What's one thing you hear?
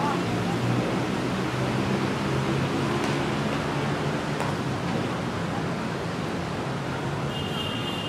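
Footsteps splash softly on wet pavement nearby.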